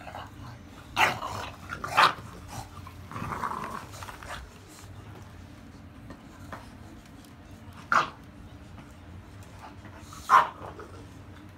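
A dog gives short, sharp barks nearby.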